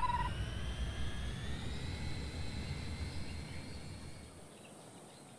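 A spaceship engine hums and whines upward, then fades.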